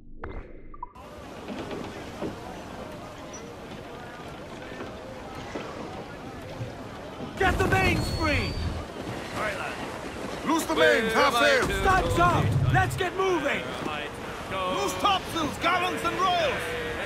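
Waves wash against the hull of a sailing ship.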